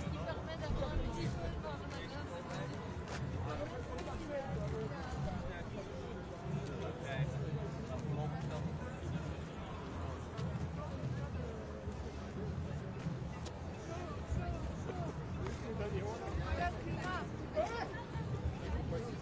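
Footsteps shuffle on pavement as a crowd walks.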